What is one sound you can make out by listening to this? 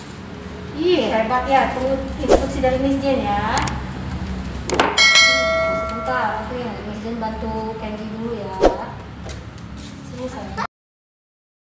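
A woman talks gently and close by.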